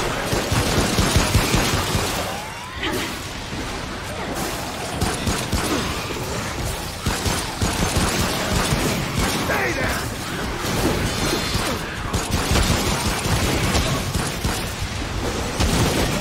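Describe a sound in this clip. Monsters shriek and growl.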